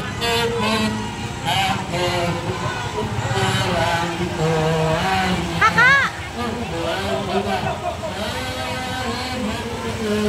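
A crowd of people chants loudly outdoors.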